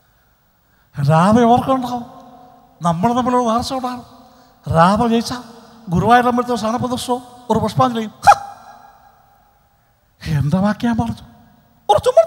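A man sings into a microphone, heard through loudspeakers with a slight echo.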